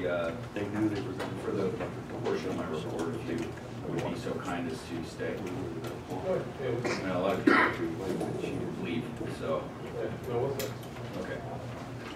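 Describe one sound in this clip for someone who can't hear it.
A man speaks steadily into a microphone, heard through loudspeakers in an echoing room.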